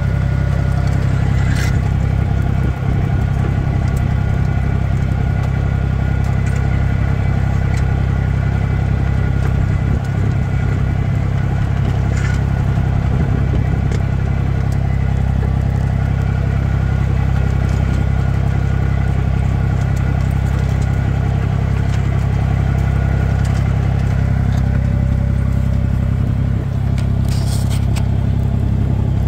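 A plough scrapes and rustles through dry soil.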